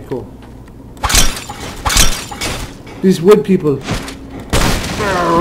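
A spiked mace smashes into a wooden barrel with heavy thuds.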